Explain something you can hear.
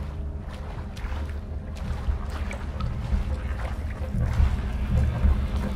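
Water splashes as a swimmer paddles through it.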